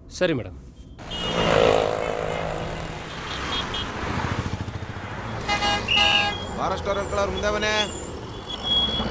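City traffic rumbles past with engines and horns.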